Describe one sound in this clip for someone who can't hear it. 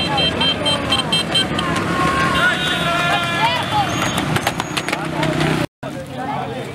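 Small motorcycles ride past with engines droning.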